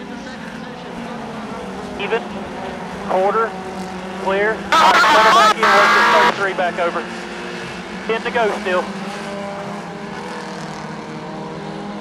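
Race car engines roar steadily around a track.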